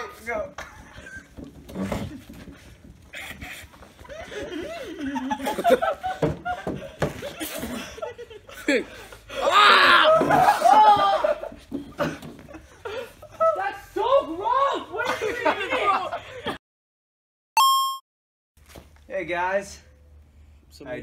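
Young men talk and laugh with animation close by.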